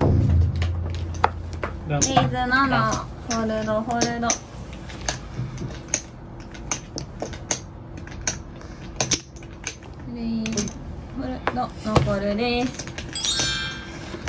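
Poker chips click and clatter on a table.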